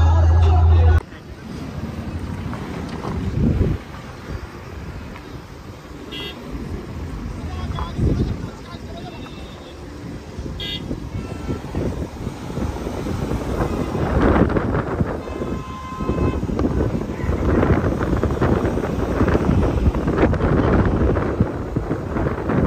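Wind rushes and buffets past a moving vehicle.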